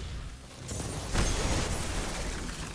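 A burst of energy explodes with a loud crackling blast.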